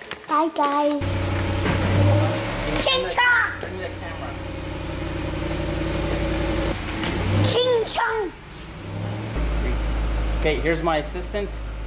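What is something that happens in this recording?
A car engine starts and idles with a deep rumble.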